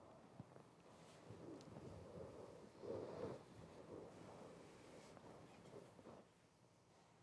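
A man speaks quietly at a distance.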